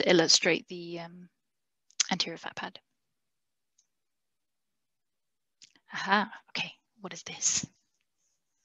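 A young woman speaks calmly in short bursts over an online call.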